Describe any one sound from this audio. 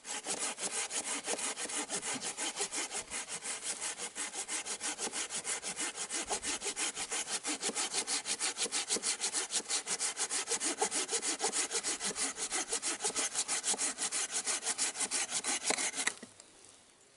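A hand saw cuts through a wooden log with quick, rasping strokes.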